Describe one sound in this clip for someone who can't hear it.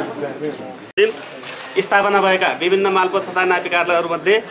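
A man speaks loudly into a microphone through a loudspeaker, with echo.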